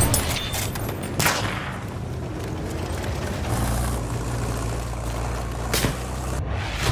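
A rifle bolt clacks as it is worked.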